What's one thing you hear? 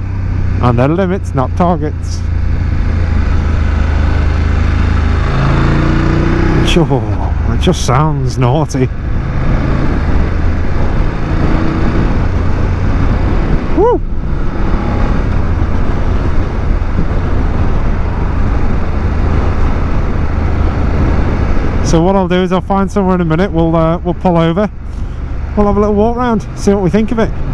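A motorcycle engine hums steadily and rises and falls as the rider changes speed.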